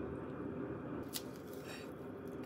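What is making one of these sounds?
A sheet of dried seaweed crinkles between fingers.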